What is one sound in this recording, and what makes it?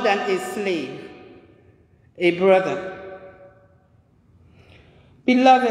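A man sings slowly into a microphone, his voice echoing in a large reverberant hall.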